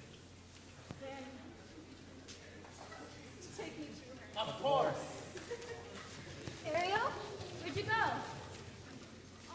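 Teenage actors speak with animation in a large echoing hall.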